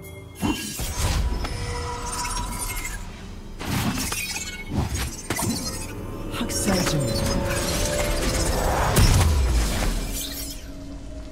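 Blades slash and strike in quick bursts of fighting.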